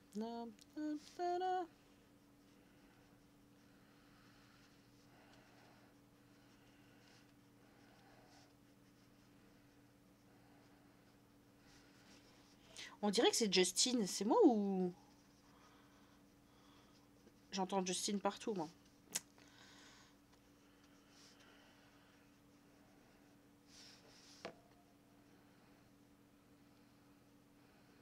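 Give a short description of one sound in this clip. A felt pen squeaks and rubs across paper.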